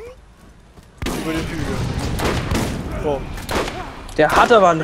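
A rifle fires rapid gunshots.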